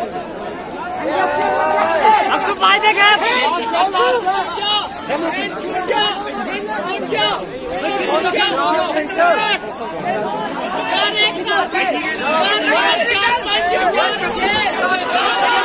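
Young men cheer and shout loudly.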